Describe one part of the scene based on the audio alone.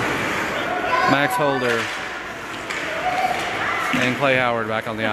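Spectators shout and cheer loudly in an echoing rink.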